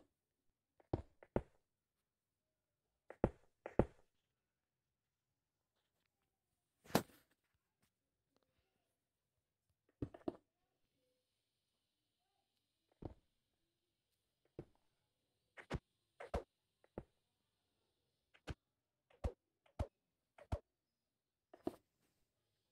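Blocks are placed one after another with short soft thuds.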